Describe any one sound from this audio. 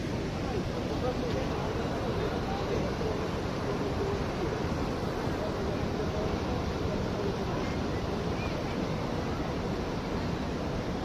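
Water rushes and splashes over a weir.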